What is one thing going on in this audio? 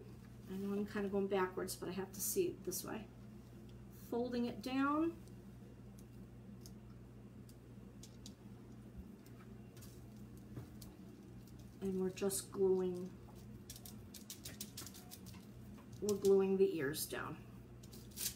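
A woman talks calmly and close by, pausing between phrases.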